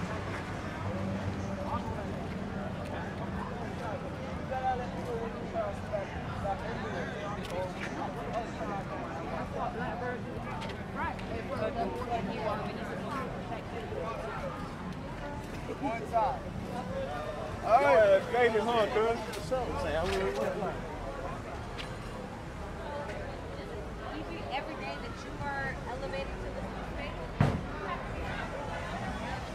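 A crowd of people chatter outdoors all around.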